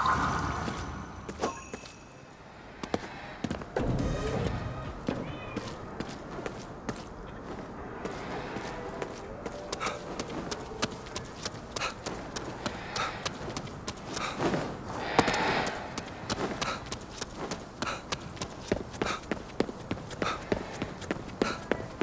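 Rain falls steadily on a wet street.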